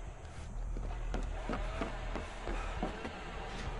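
Footsteps thud on creaking wooden boards.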